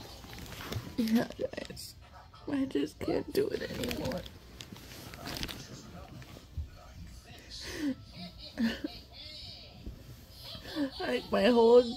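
A woman cries and speaks in a tearful voice close by.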